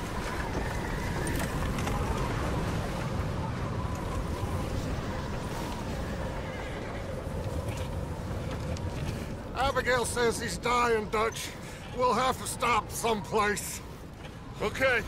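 Wagon wheels rumble and creak over the ground.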